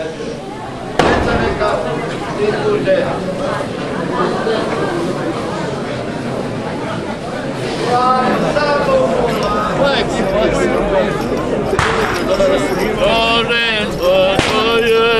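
A crowd of people sing together in an echoing space.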